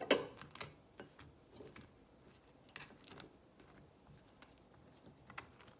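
A butter knife scrapes spread across toast.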